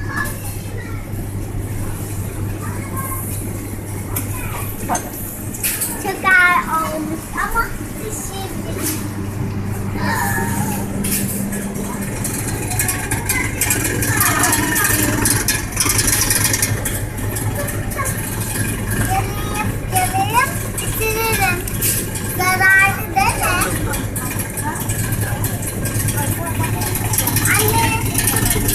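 A small shopping cart rattles as its wheels roll over a hard floor.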